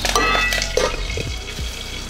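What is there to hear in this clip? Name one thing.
A metal spoon scrapes and stirs in a metal pan.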